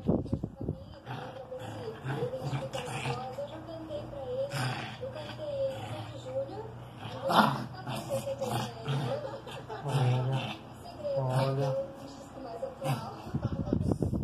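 A young man talks softly and playfully, close by.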